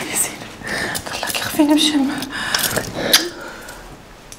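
A woman speaks softly and comfortingly nearby.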